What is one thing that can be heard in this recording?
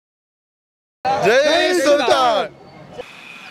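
Several men shout and cheer loudly together close to a microphone.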